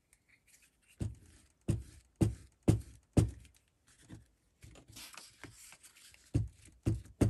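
A glue stick rubs against paper with soft thumps.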